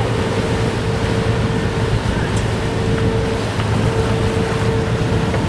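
Water splashes against the hull of a moving sailboat.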